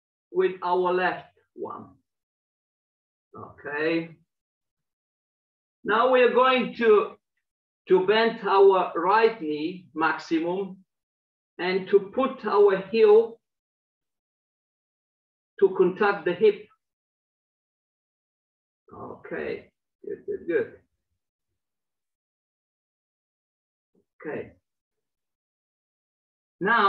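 A middle-aged man speaks calmly in short bursts, heard through an online call.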